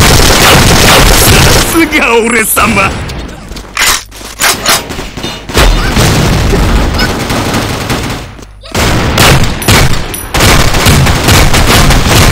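A rifle fires rapid shots in bursts.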